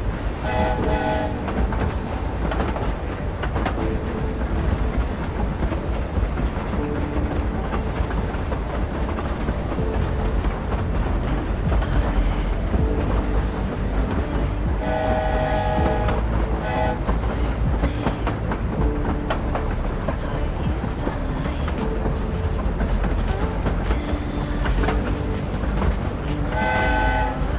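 Wind rushes past loudly throughout.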